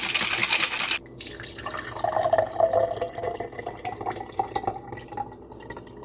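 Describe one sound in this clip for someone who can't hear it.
Liquid pours into a glass with a rising gurgle.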